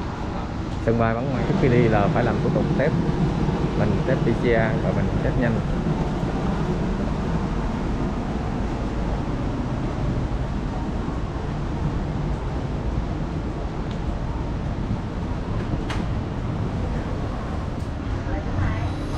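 Suitcase wheels rumble steadily over a hard floor.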